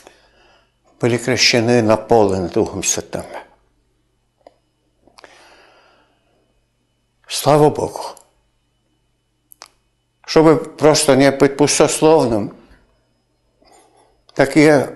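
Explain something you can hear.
An elderly man speaks calmly and closely into a microphone, with pauses.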